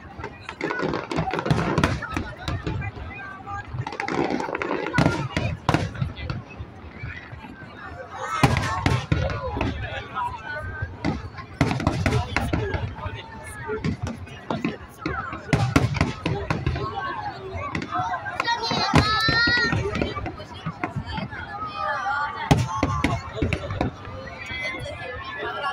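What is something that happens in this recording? Fireworks boom and crackle outdoors.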